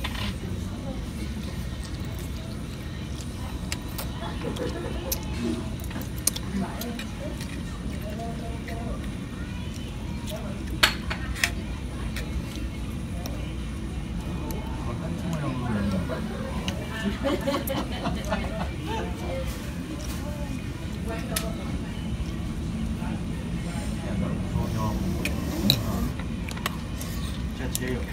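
Two boys slurp noodles loudly.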